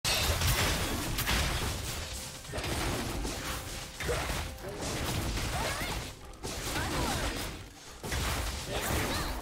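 Game characters clash with magical hits and whooshes.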